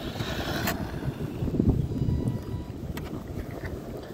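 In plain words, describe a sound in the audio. A small electric motor whines as a toy car drives over sand.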